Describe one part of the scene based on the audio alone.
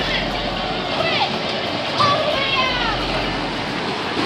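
Children squeal and shout nearby.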